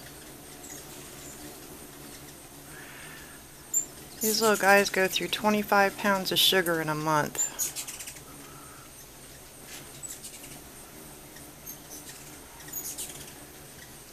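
Hummingbirds' wings hum as they hover and dart.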